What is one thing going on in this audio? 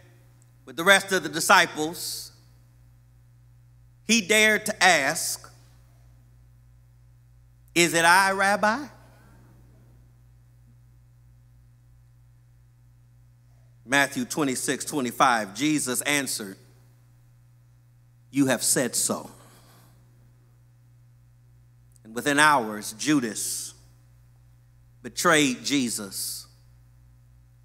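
A middle-aged man speaks slowly and with emphasis into a microphone, in bursts with long pauses.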